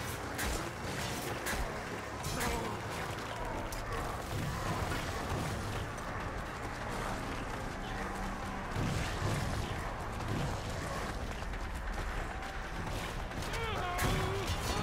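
Monsters screech and snarl.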